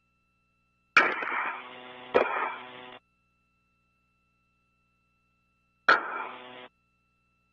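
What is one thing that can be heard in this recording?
A man speaks briefly over a crackly radio link.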